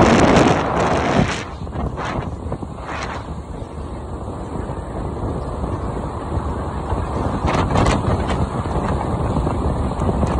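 Wind rushes and buffets past the microphone.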